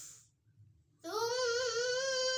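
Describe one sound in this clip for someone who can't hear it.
A girl chants a recitation in a clear, melodic voice close by.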